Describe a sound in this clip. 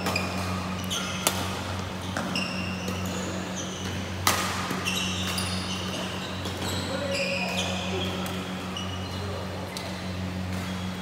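Shoes squeak sharply on the court floor.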